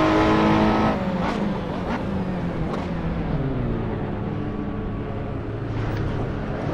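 A race car engine drops in pitch as the car slows hard for a corner.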